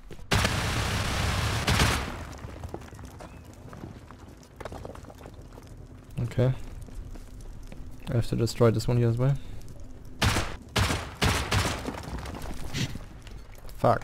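A heavy gun fires rapid shots.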